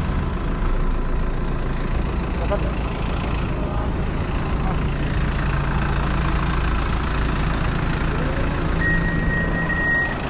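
A bus engine idles close by with a low hum.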